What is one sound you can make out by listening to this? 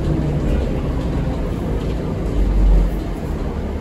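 Footsteps thud on the bus floor.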